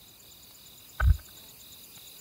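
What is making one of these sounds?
A short, sharp menu click sounds once.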